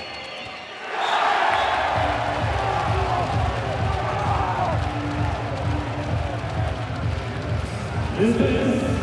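A crowd claps and drums in a fast, steady rhythm.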